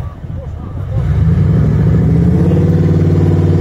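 A heavy truck engine rumbles deeply, then revs loudly.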